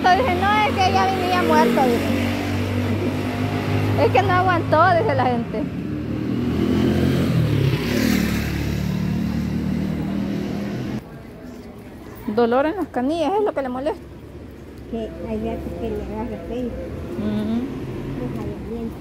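An elderly woman talks with animation close by.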